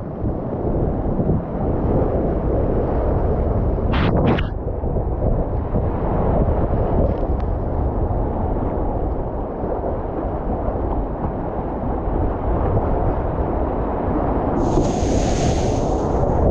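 A paddle splashes into the water.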